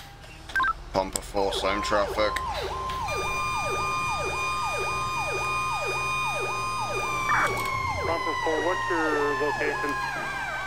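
A fire truck siren wails in fast repeating sweeps.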